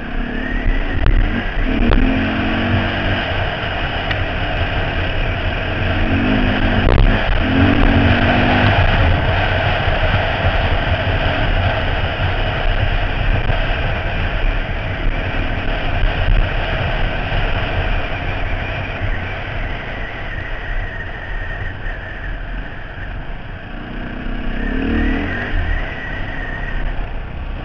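A dirt bike engine roars steadily close by.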